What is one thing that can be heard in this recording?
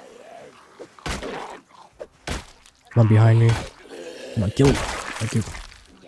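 A blunt weapon thuds against a body several times.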